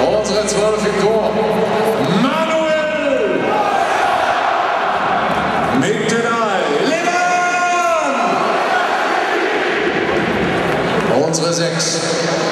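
A large crowd chants and roars loudly in a huge echoing stadium.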